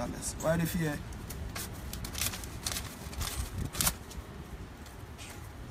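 Paper banknotes rustle and flick in a young man's hands.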